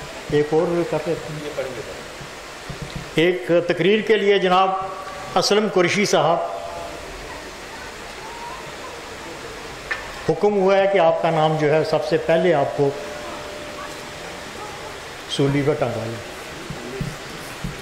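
An elderly man speaks with feeling into a microphone, heard through loudspeakers in open air, with pauses between phrases.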